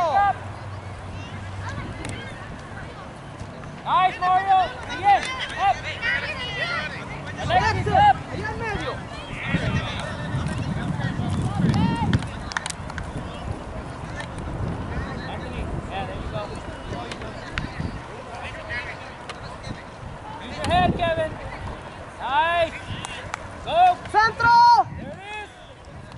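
Young players and onlookers shout and cheer across an open field outdoors.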